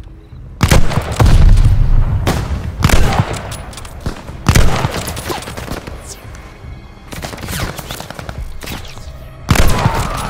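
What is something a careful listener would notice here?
A rifle fires loud single shots that boom and echo.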